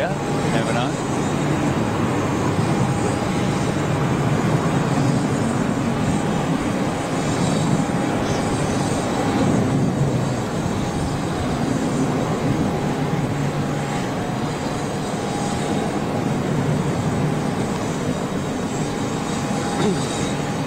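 A jet airliner's engines roar steadily as it taxis nearby.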